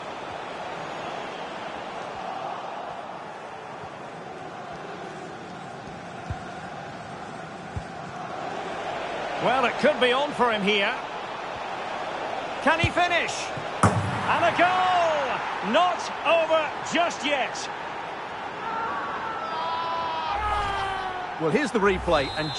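A stadium crowd murmurs steadily and swells into a roar.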